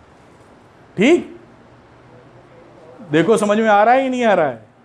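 A middle-aged man speaks clearly and calmly, explaining as if teaching, close by.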